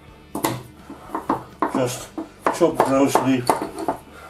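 A knife chops on a wooden board.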